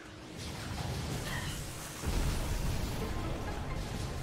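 Blaster shots fire and explode in rapid bursts.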